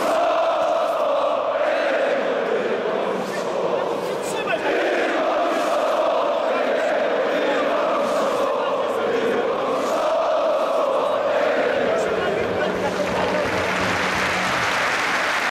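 A huge crowd of fans chants loudly in unison in a large echoing stadium.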